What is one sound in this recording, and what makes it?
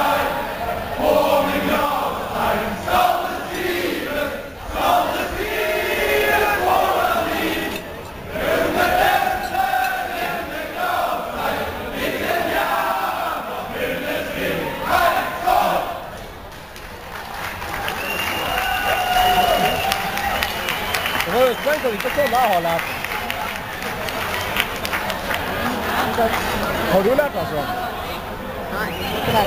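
A choir of women sings together in a large hall.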